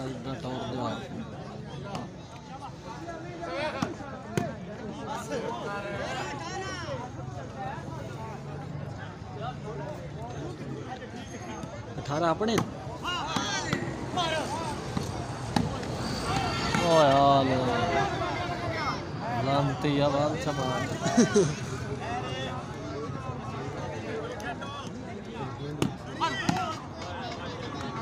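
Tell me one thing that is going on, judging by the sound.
Men shout and call out loudly across an open field.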